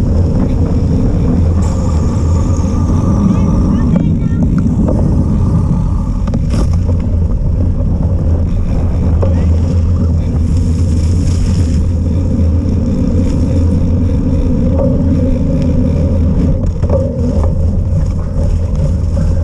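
Bicycle tyres roll over a wet, gritty path.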